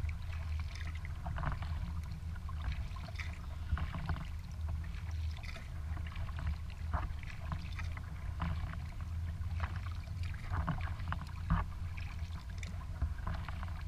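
Water laps and splashes against the hull of a kayak.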